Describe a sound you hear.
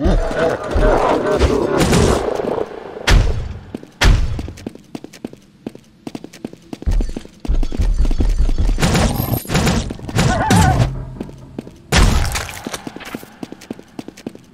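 Sword slashes and heavy hits ring out in a video game.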